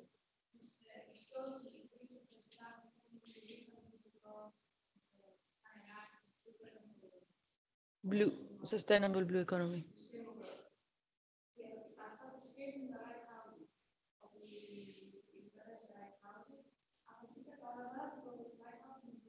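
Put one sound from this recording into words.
A woman speaks calmly over a microphone, as in an online call.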